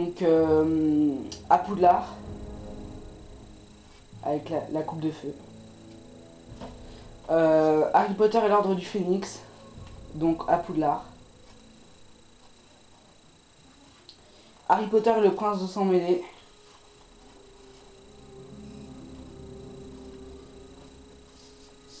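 Stiff paper cards rustle and slide as a hand handles them.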